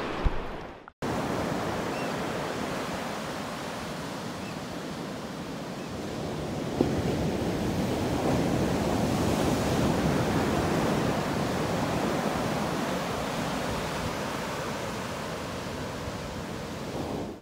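Waves wash onto a beach with a steady rushing roar.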